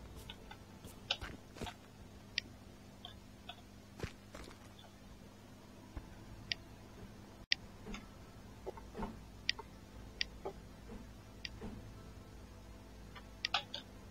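Short, sharp electronic clicks sound now and then as building parts snap into place.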